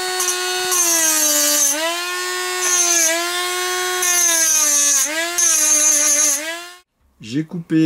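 A small rotary tool whines at high speed, its pitch dipping as a cutting disc grinds metal.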